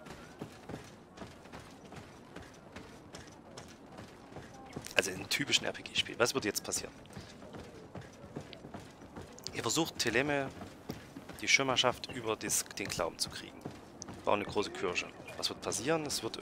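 Footsteps thud quickly across wooden planks.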